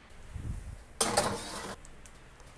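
A metal tray scrapes and rattles as it slides onto an oven rack.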